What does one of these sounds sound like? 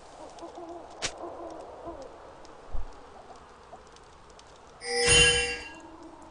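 Video game combat sound effects clash and ring out.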